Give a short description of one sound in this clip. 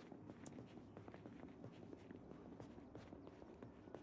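Footsteps thud down wooden stairs.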